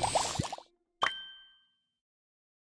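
A game tone chimes.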